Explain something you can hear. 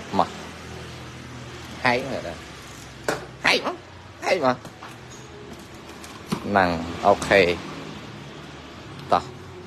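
Cardboard scrapes and rustles as a box is opened.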